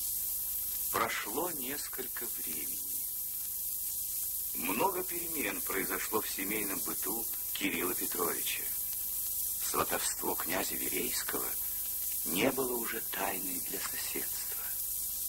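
A woman speaks quietly in short phrases, heard through an old, hissy recording.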